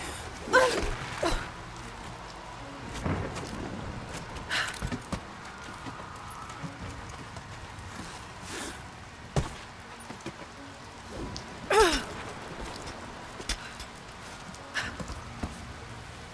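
Hands and boots scrape and knock on stone while climbing.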